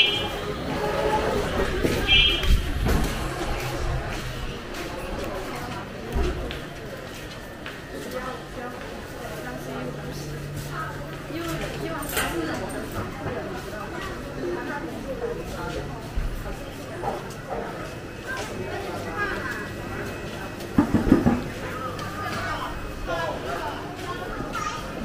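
Voices murmur in the distance outdoors.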